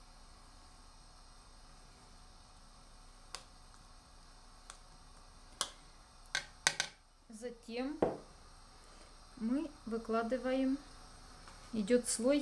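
A metal spoon clinks and scrapes against a bowl.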